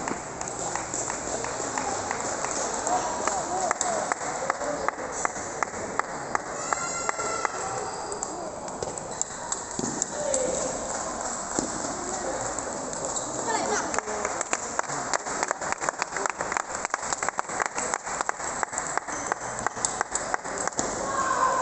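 Table tennis balls click rapidly against paddles and tables in a large echoing hall.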